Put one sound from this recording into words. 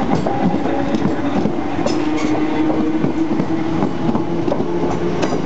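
An electric train rolls past close by with a steady hum.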